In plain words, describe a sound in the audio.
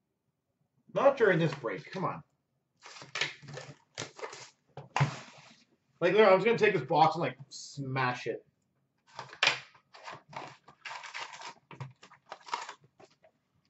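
A cardboard box scrapes and taps against a counter.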